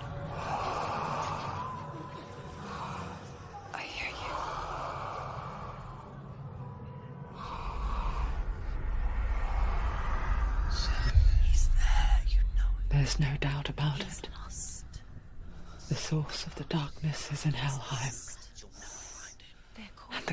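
A young woman speaks softly and tensely, close by.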